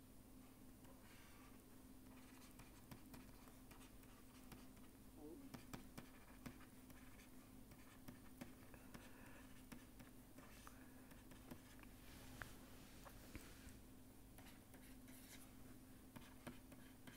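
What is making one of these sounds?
A pen taps and scratches on a writing tablet.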